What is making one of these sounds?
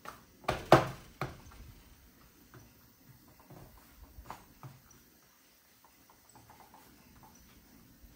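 Hands pat and slap pizza dough.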